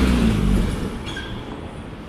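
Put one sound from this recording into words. A car drives by on the road.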